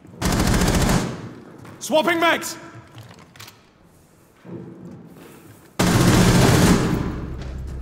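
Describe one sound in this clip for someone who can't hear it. A rifle fires short rapid bursts at close range.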